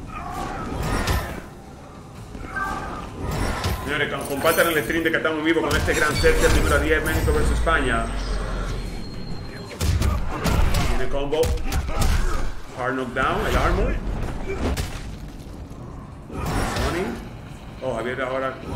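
Punches and kicks land with heavy thuds in a video game fight.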